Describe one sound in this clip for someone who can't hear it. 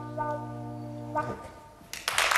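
A band on stage holds a final chord that stops sharply.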